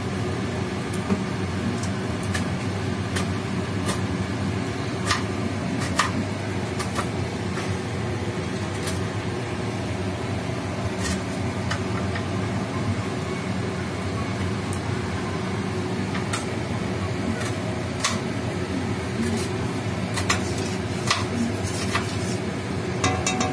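Hot oil crackles and pops in a pan.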